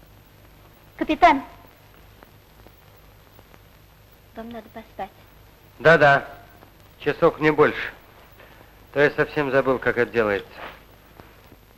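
A man speaks in a low, quiet voice.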